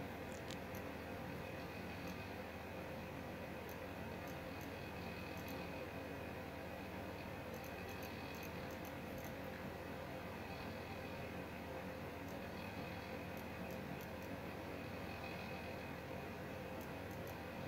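Fire crackles softly nearby.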